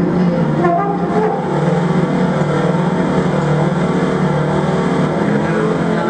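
A man plays a horn with wavering, sustained notes.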